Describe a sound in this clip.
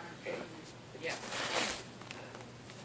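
Dry grass rustles as a hand brushes through it.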